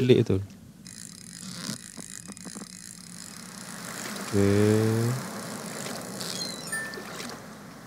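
A fishing reel clicks and whirs as a fish is reeled in.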